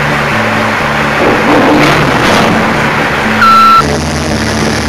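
A forklift's diesel engine idles and rumbles close by.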